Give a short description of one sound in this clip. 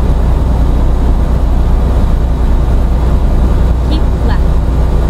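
A truck engine drones steadily at low pitch.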